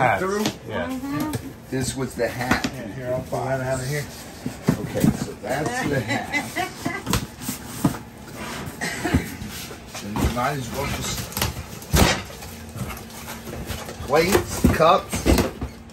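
Cardboard boxes rustle and scrape as a man handles them.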